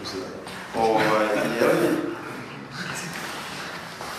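Men laugh together.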